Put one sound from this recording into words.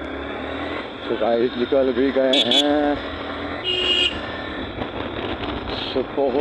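Motorcycles and scooters ride past along a busy street.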